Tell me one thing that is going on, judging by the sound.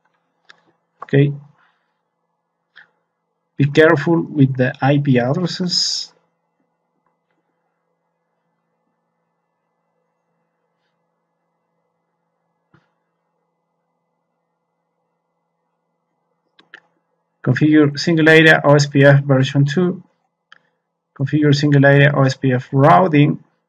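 A man talks calmly and close to a microphone, in short bursts with pauses.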